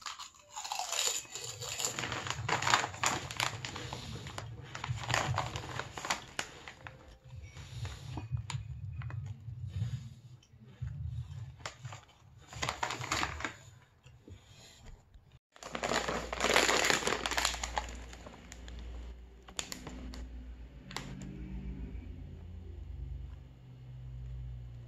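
A crisp bag crinkles loudly as it is handled.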